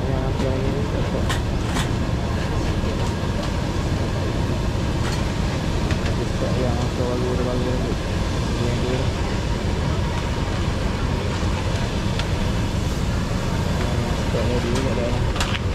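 A man scrapes a metal spatula in a wok.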